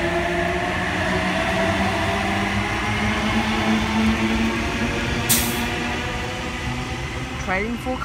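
An electric train whines and rumbles past close by, then fades into the distance.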